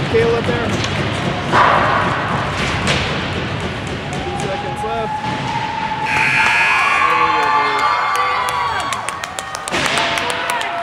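Spectators talk and call out in the stands.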